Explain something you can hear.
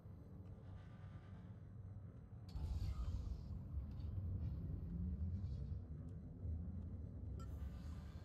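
A deep underwater engine rumbles steadily.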